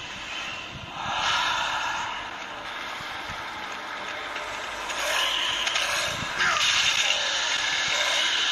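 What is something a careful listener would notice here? Game combat sounds clash and whoosh through a small phone speaker.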